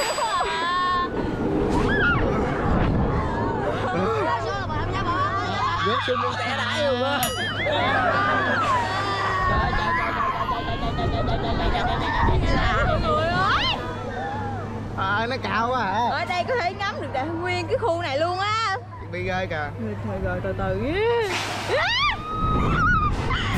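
Children scream and shriek loudly nearby.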